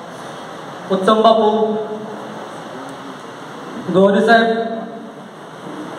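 A man speaks loudly and forcefully through a microphone and loudspeakers in an echoing hall.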